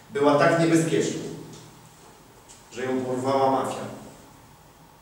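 A man speaks loudly and with emphasis in a room with a slight echo.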